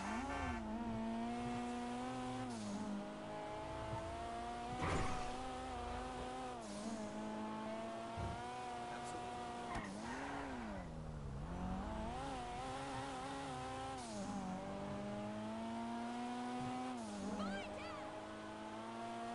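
A car engine hums steadily, revving up and down as the car speeds along and slows.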